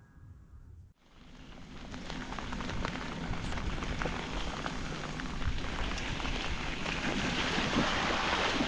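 Wind rushes loudly past while riding downhill.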